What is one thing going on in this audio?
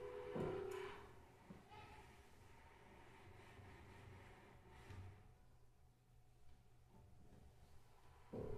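A cello plays soft, low notes.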